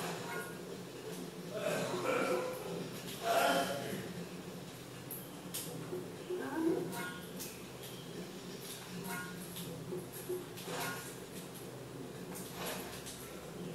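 Video game sound effects play from a television speaker.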